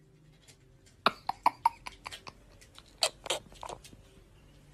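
A young boy laughs loudly and close by in short bursts.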